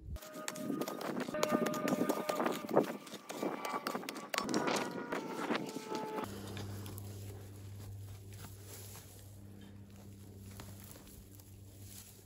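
A small hand tool scrapes and digs into dry earth.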